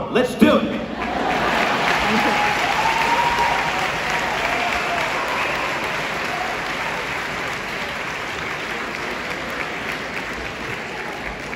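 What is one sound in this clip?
An orchestra with strings plays in a large echoing hall.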